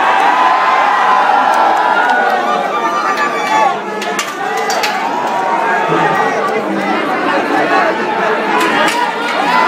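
A large crowd cheers and shouts loudly outdoors.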